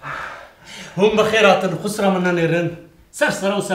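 An elderly man talks with emotion, close to a microphone.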